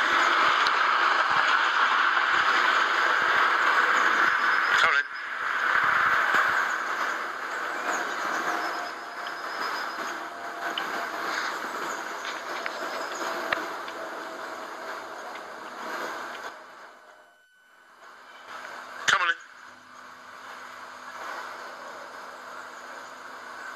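A dog runs along a dirt path with soft pattering paws.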